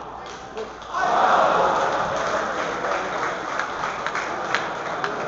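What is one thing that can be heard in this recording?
A crowd bursts into applause and cheers.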